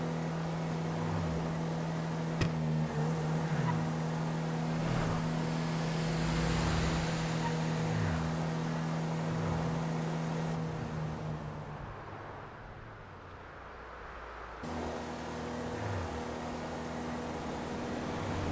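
Cars whoosh past on a road one after another.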